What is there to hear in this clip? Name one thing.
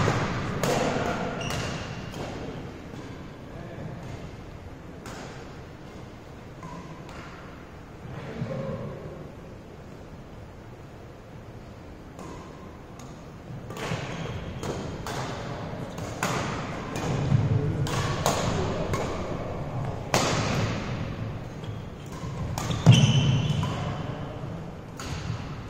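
Shuttlecocks are struck with rackets, sharp pops echoing in a large hall.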